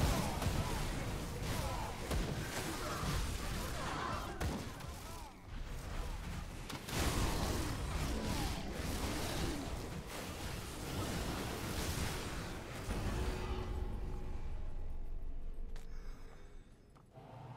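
Magic blasts crackle and boom in a fierce fight.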